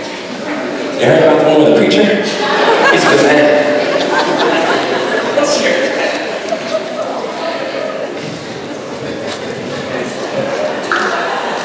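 A young man sings a solo out in front of the choir.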